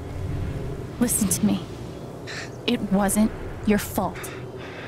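A young woman speaks softly and reassuringly, close by.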